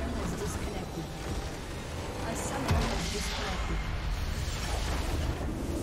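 Game spell effects crackle and explode in a loud battle.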